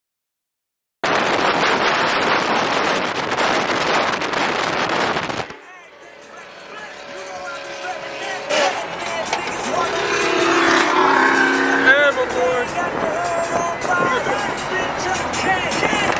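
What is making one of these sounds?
Wind and road noise roar inside a moving car.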